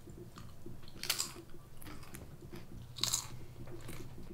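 A woman crunches potato chips loudly.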